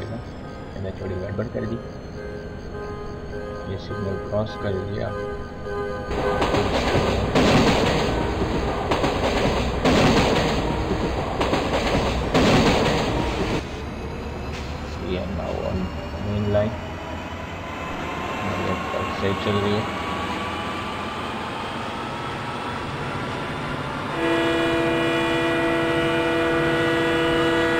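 A diesel locomotive engine rumbles and throbs steadily.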